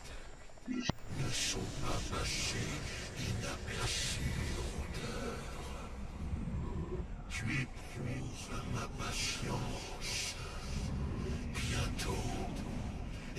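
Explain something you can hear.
A deep-voiced man speaks slowly and menacingly.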